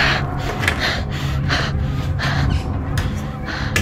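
A door handle rattles as a door is pulled open.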